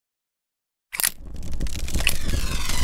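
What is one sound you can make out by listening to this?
A flame crackles and roars as paper burns.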